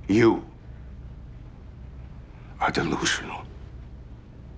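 A middle-aged man speaks in a low, serious voice.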